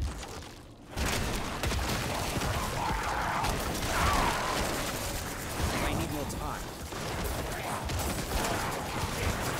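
Magic blasts and fighting effects crackle and rumble.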